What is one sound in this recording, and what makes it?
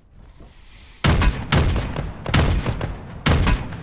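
Loud gunshots ring out in quick bursts.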